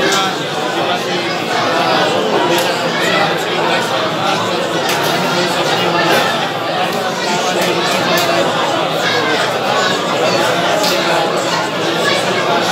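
A large crowd of men murmurs and talks all at once, in a room with a slight echo.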